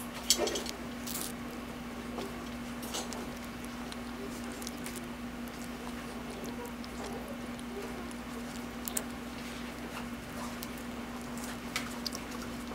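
Paper wrapping crinkles and rustles close by.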